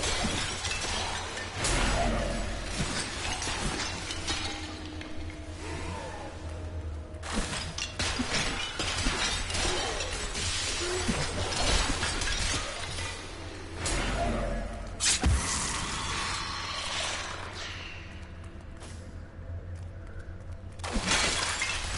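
Game combat sounds clash and splatter as monsters are slain.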